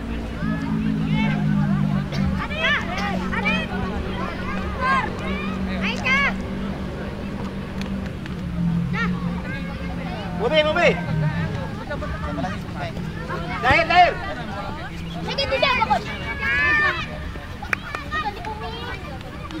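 Young players shout to each other across an open field, heard from a distance.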